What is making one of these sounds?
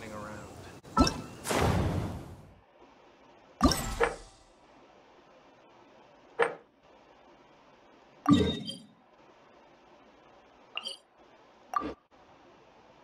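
Short chimes sound as game menus open and close.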